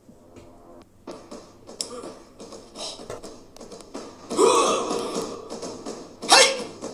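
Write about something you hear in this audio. A man speaks with loud animation close to a phone microphone.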